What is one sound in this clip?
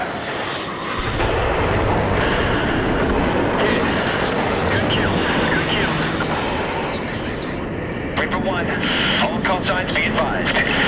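Heavy explosions boom and rumble.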